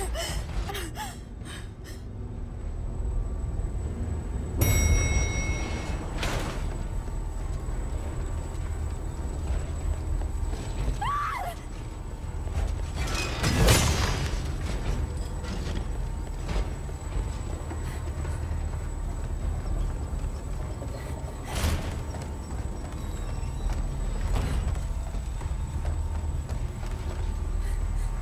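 Light footsteps hurry across floors and up stone stairs.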